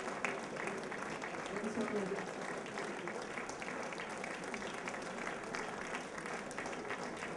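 An audience claps and applauds in a large hall.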